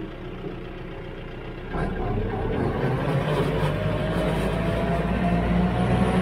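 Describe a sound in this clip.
A tractor's diesel engine idles, then revs up louder and rises in pitch.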